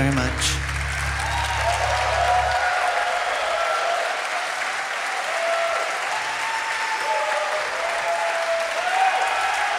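Audience members whistle in a large hall.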